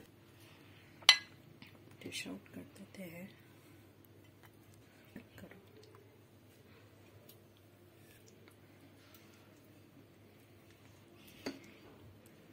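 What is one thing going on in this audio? A spatula clinks and scrapes against a glass dish.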